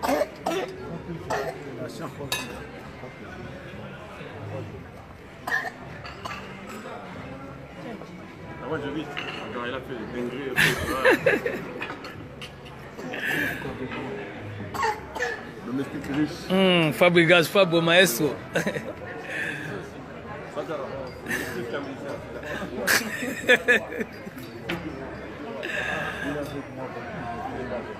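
Several men and women chatter and talk nearby.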